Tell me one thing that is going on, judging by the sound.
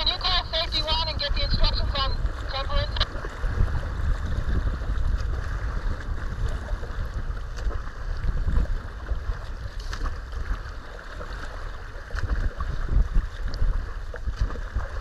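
Wind rumbles steadily across open water.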